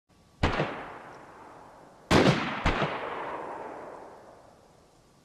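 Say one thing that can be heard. Rifle shots crack one after another, each rolling away in a long echo across open ground.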